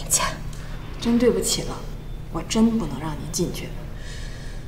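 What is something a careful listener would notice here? A young woman speaks politely and apologetically, close by.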